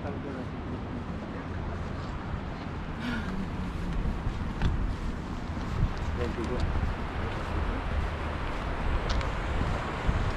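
River water rushes steadily nearby.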